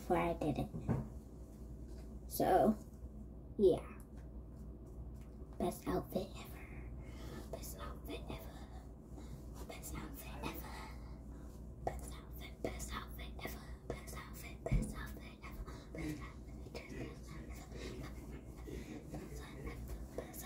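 A young girl talks animatedly close by.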